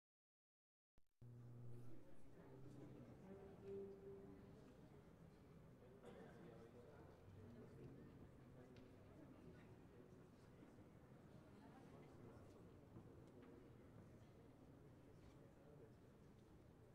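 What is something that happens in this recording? A string orchestra plays a slow piece in a resonant hall.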